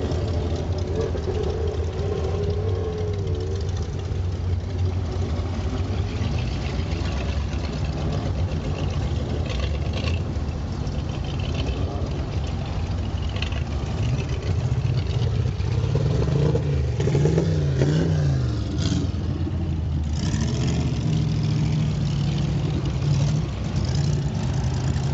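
Other old car engines roar and rev past nearby.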